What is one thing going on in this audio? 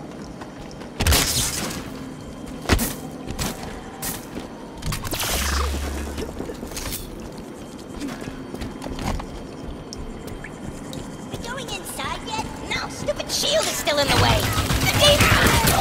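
Gunshots and blasts crack in bursts.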